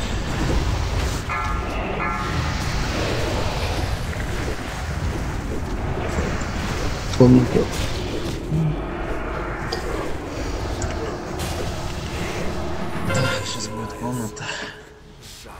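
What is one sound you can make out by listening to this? Magic spells whoosh and crackle in a noisy battle.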